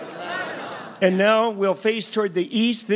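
A man sings loudly and passionately through a microphone.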